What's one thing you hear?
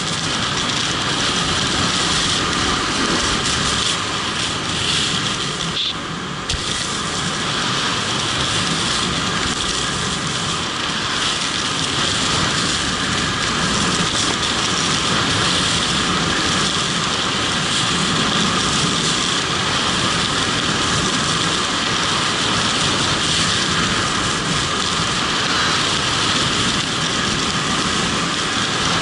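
Wind rushes loudly past a helmet as a skier speeds downhill.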